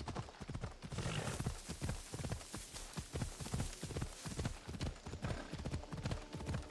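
Tall dry grass rustles and swishes against a running horse.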